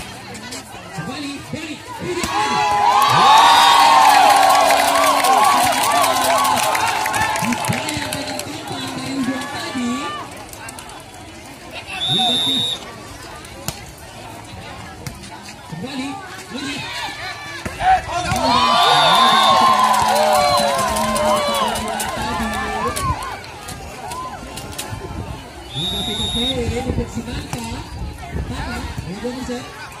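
A large outdoor crowd cheers and shouts loudly in bursts.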